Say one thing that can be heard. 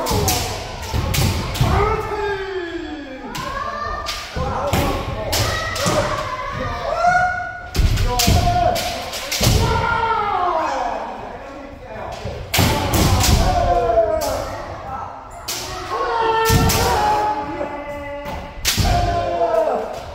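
Shouts and strikes echo in a large hard hall.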